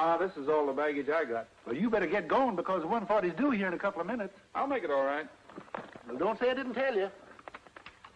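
Two men talk calmly nearby.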